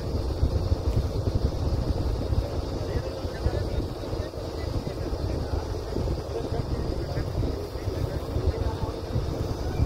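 A drilling rig's engine rumbles steadily and loudly.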